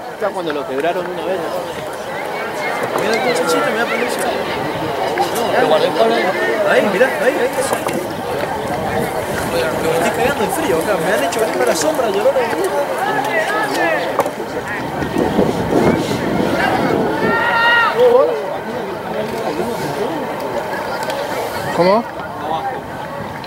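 A crowd of spectators murmurs and cheers outdoors.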